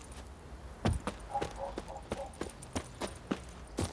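Quick footsteps run over rustling grass and wood.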